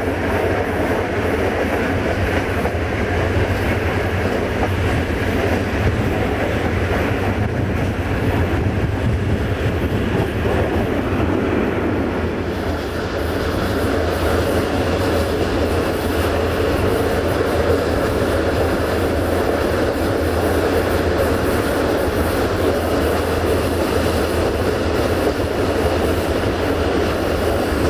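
A train's wheels rumble and clatter steadily along the track.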